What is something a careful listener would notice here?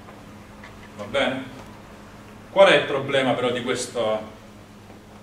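A young man speaks calmly, lecturing.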